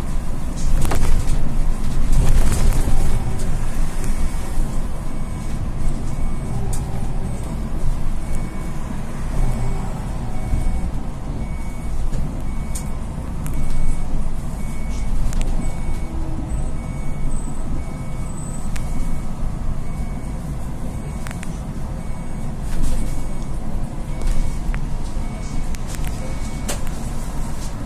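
A bus body rattles and clicks as it rolls over the road.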